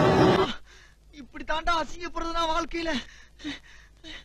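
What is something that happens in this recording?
A young man speaks with emotion, close by.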